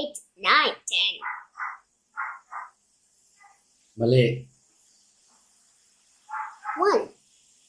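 A young boy speaks softly nearby.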